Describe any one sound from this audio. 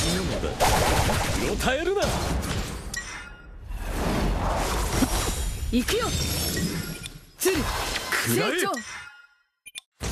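Magic blasts whoosh and crackle in a game battle.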